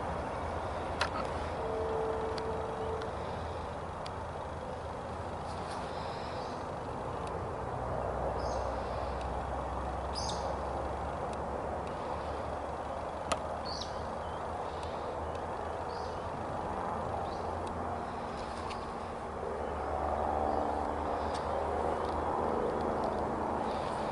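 A train rumbles in the distance and grows louder as it approaches.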